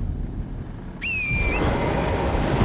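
A sharp whistle sounds briefly.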